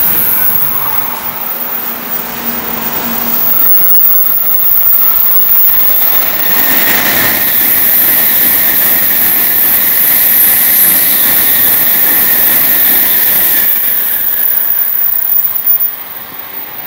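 A high-speed train rushes past close by with a loud whooshing roar.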